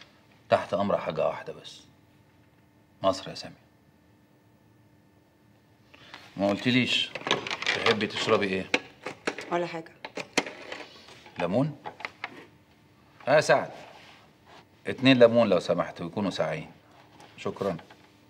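A middle-aged man speaks calmly and firmly nearby.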